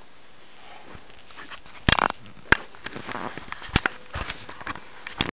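Clothing rustles and bumps right against the microphone.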